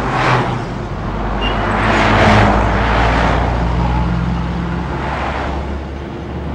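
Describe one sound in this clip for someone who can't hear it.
A car passes by close on the street.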